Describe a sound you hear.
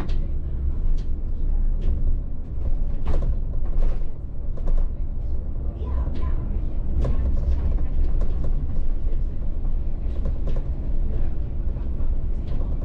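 The bus body rattles and clatters over the cobbled street.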